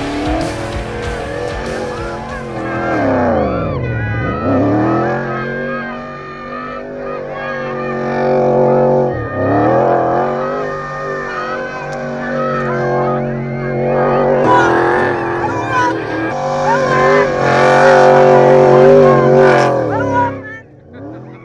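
A rally car engine roars and revs hard, rising and falling in pitch as it passes close by.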